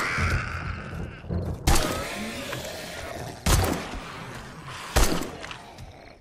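Gunshots fire in loud, sharp bursts.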